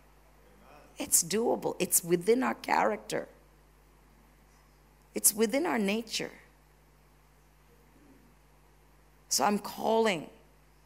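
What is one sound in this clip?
A woman speaks with animation into a microphone in a large room.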